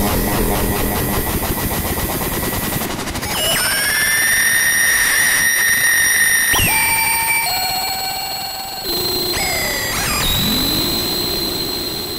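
A synthesizer plays electronic tones that shift and glide in pitch.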